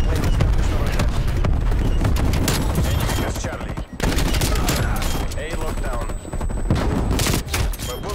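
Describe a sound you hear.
A semi-automatic shotgun fires.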